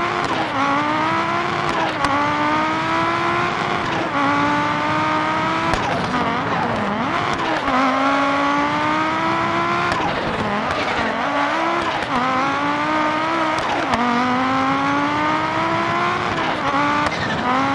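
A rally car engine roars loudly, revving up and shifting gears again and again.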